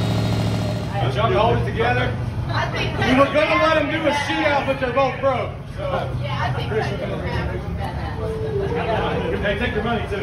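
Several men talk and call out loudly close by.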